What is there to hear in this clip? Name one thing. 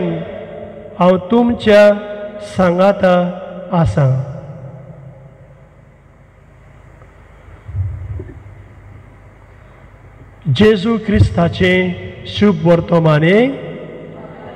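A man chants slowly into a microphone in a large echoing hall.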